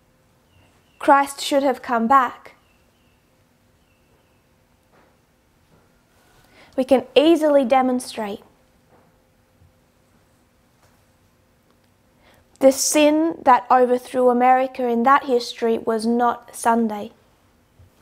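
A woman speaks calmly into a close microphone, in short bursts with pauses.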